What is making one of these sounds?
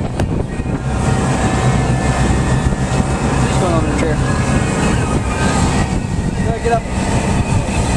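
Water splashes and churns behind a boat.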